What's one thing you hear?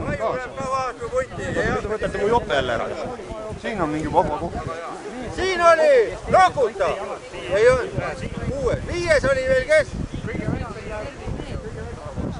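A crowd of men and women talks and calls out nearby, outdoors.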